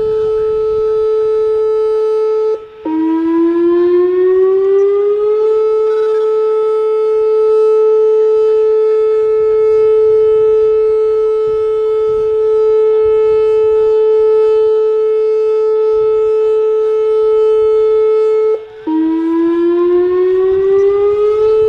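A loud warning siren wails steadily, briefly drops in pitch and slowly rises again.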